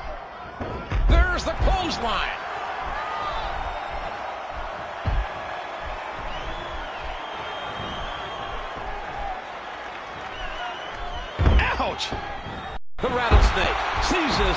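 Heavy bodies slam onto a wrestling ring with loud thuds.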